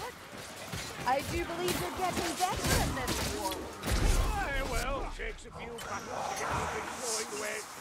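Blades clash and slash in a close fight.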